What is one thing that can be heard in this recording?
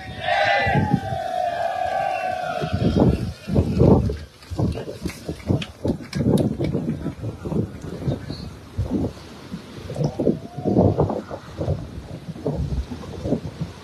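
Small waves wash up on the shore.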